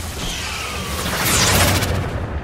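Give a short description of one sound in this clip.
A creature's body bursts with a wet splatter.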